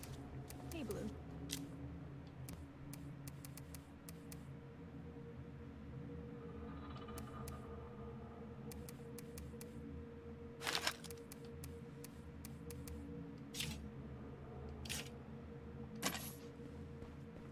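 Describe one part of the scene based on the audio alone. Soft clicks tick now and then.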